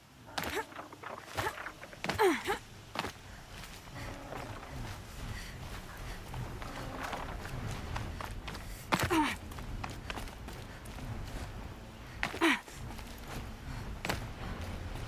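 Footsteps crunch quickly over loose stones and gravel.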